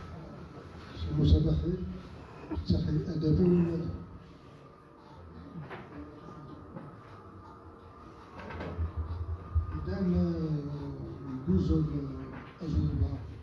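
A man speaks into a microphone over a loudspeaker in an echoing hall.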